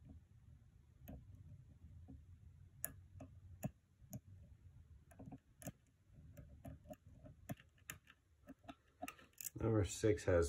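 A metal pick clicks and scrapes softly inside a lock.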